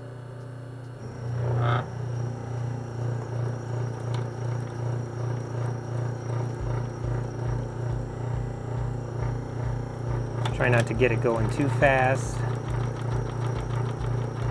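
A small machine motor hums with a steady, pulsing throb.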